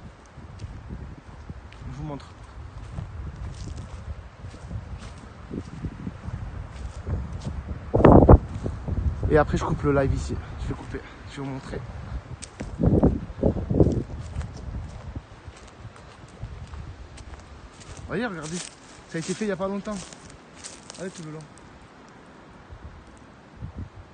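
Footsteps crunch over dry leaves and twigs outdoors.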